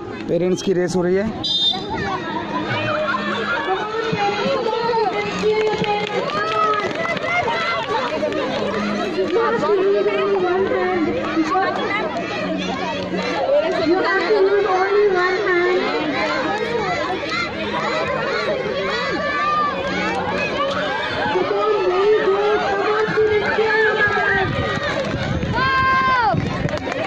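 A crowd of women and girls cheer and chatter loudly outdoors.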